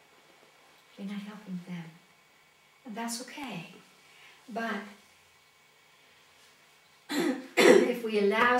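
A middle-aged woman speaks calmly and closely, in short phrases with pauses.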